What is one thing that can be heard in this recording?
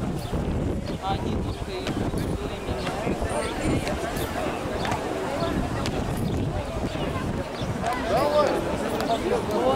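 Men and women in a small crowd chatter nearby outdoors.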